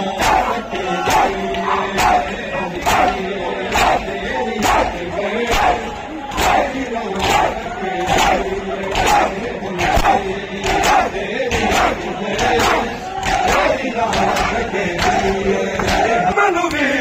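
A crowd of men chants loudly together in time with the beating.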